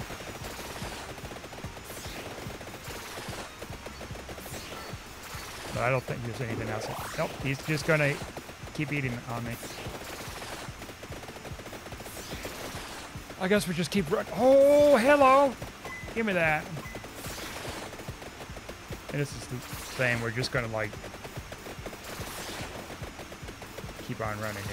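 Rapid electronic whooshing and zapping effects play without pause.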